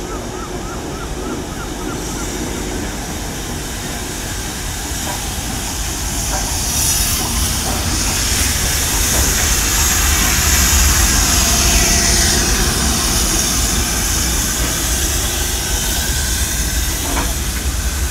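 A steam locomotive rumbles and clanks close by as it rolls slowly past.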